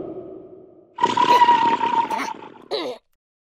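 A loud, hissing fart blows out.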